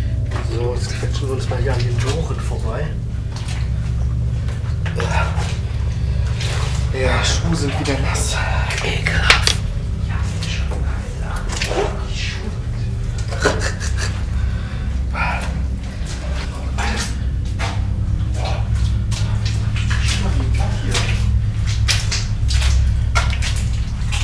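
Footsteps crunch and scrape on rocky ground in a narrow echoing tunnel.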